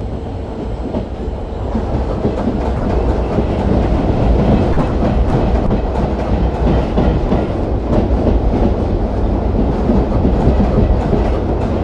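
A train rumbles steadily along the tracks, its wheels clacking on the rails.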